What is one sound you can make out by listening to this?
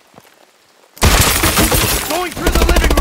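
A door bursts open with a loud crash.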